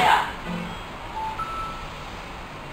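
Soft electronic menu beeps sound through a television speaker.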